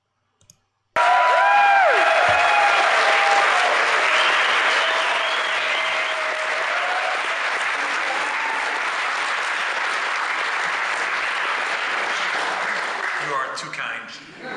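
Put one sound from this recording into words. A large crowd claps and cheers loudly.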